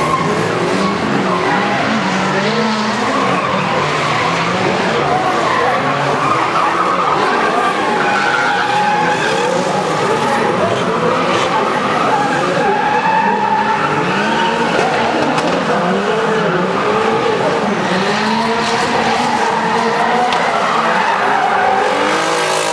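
Tyres screech as cars slide around a track.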